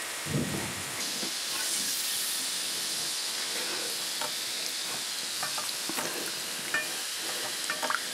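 Soup simmers and bubbles in a pot.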